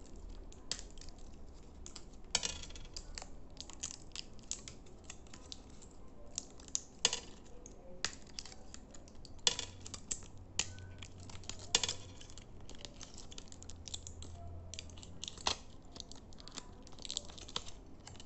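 Fingernails tap and click against glass close by.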